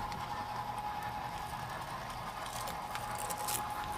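A model train rumbles and clicks along its track.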